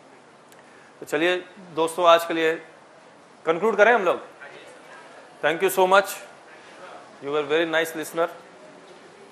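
A man speaks through a microphone in short bursts, heard over loudspeakers in a large room.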